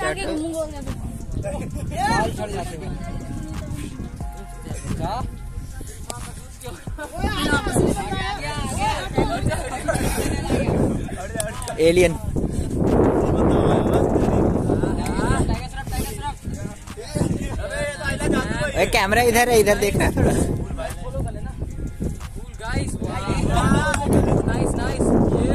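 Young men talk and call out nearby, outdoors.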